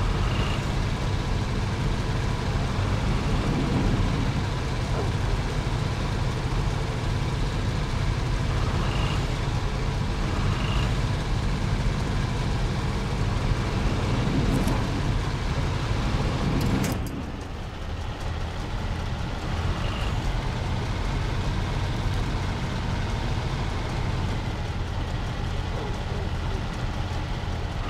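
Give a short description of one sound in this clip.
Water splashes under a truck's wheels.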